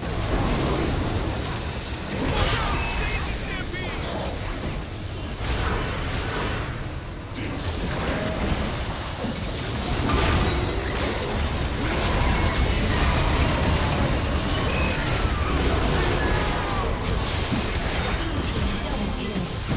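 Magical blasts, whooshes and impacts from a video game battle crash together.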